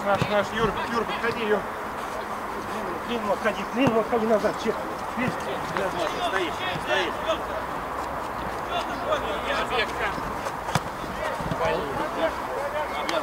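Men shout to each other across an outdoor pitch.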